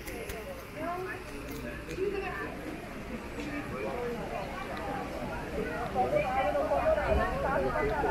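A crowd of men and women chat at nearby tables, outdoors.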